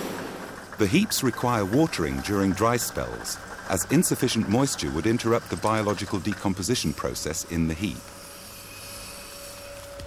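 A water sprinkler hisses and ticks.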